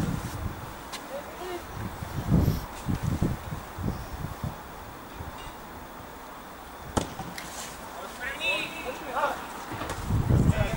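Young players shout to each other from across a field outdoors.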